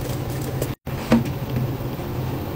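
Thick liquid pours and splashes into a sink.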